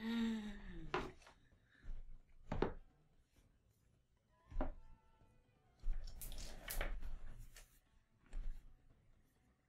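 Plastic parts knock and click.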